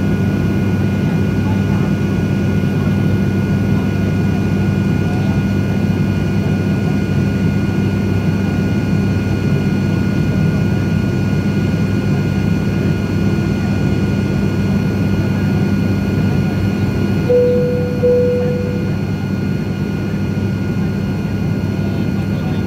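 A jet engine drones steadily, heard from inside an airliner cabin.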